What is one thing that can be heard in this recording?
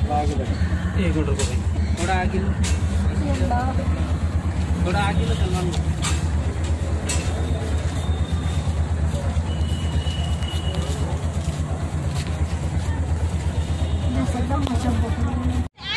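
An elderly woman speaks weakly, close by.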